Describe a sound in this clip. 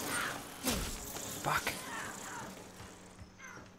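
A man speaks into a headset microphone.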